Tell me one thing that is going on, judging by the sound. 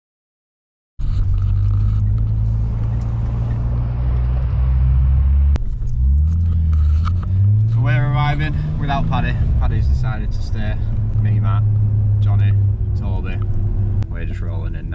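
A car engine drones loudly and revs up and down.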